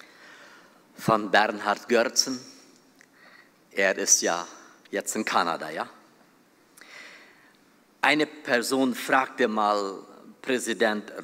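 An older man speaks calmly into a microphone.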